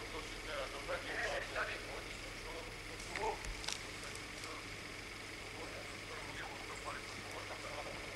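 People push through rustling undergrowth.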